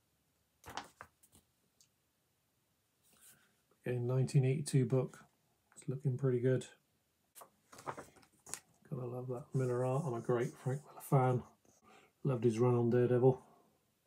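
Paper rustles as a comic is handled.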